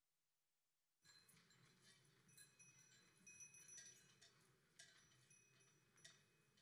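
A drum beats.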